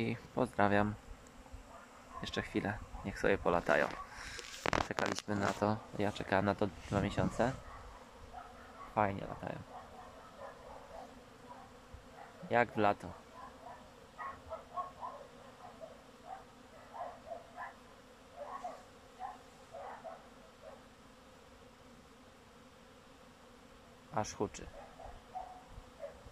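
Bees hum faintly around their hives outdoors.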